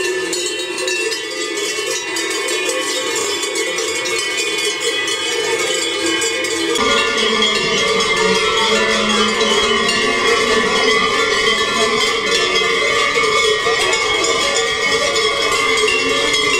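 Many cowbells clang and jangle as cattle walk past.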